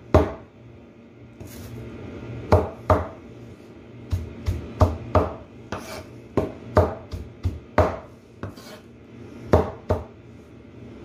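A cleaver chops leafy greens on a board with sharp knocks.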